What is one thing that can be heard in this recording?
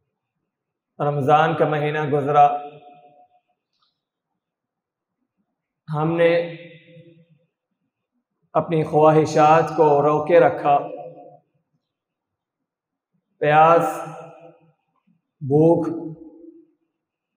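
A young man recites in phrases through a microphone, with pauses between them, in a room with a slight echo.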